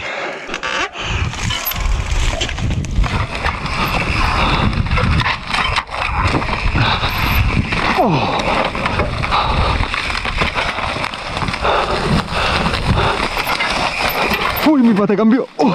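Wind rushes loudly over the microphone as a bike speeds downhill.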